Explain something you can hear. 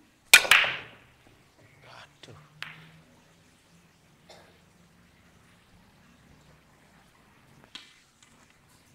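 Billiard balls clack against each other and roll across the table.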